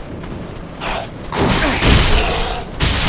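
A sword swings and strikes with a loud clash.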